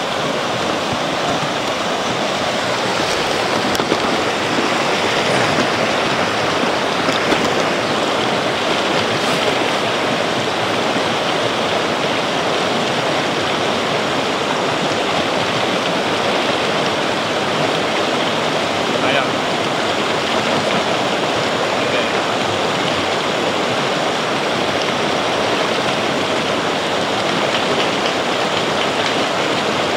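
A shallow stream rushes and babbles close by.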